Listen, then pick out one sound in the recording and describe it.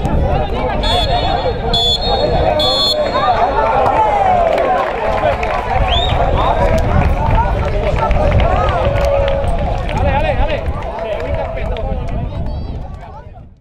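Spectators chatter and call out around an open-air pitch.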